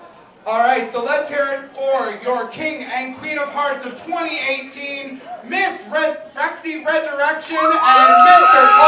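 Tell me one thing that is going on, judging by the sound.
A man announces into a microphone, heard through a loudspeaker in an echoing room.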